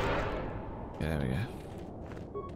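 A magical power hums and shimmers briefly.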